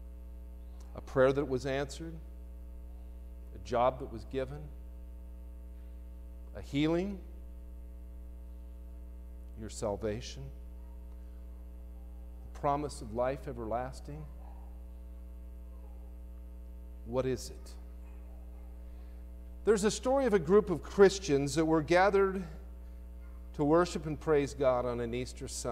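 A man speaks slowly through a microphone in a large echoing hall, with long pauses.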